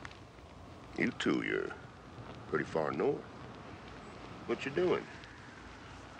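An elderly man speaks calmly in a low, gruff voice.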